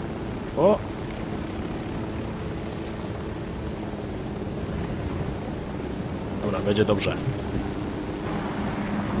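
A helicopter engine hums steadily nearby.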